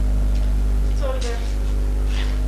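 A young woman speaks briefly.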